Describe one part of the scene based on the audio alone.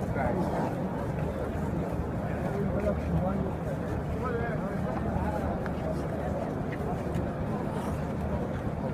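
A large crowd of men and women murmurs and chatters close by, outdoors.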